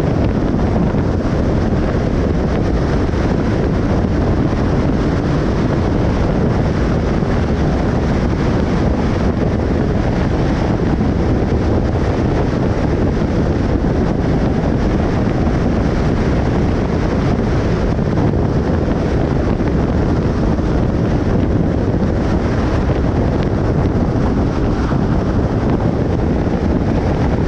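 Tyres roar steadily on a highway as a car drives along.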